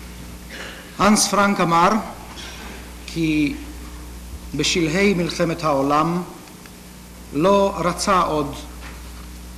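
A man speaks slowly and formally into a microphone in an echoing hall.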